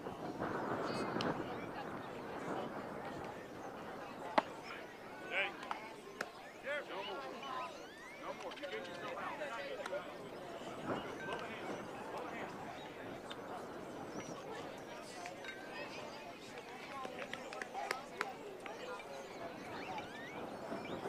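Children and adults chatter and call out across an open field.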